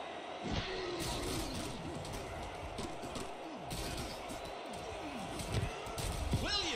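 Football players' pads clash and thud as they collide.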